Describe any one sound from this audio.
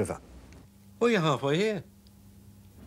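A middle-aged man answers calmly over a telephone line.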